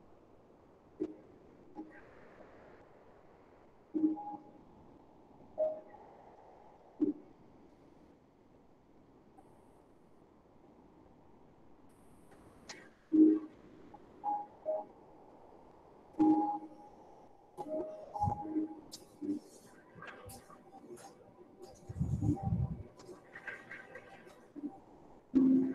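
A middle-aged man speaks calmly over an online call, in short bursts with pauses.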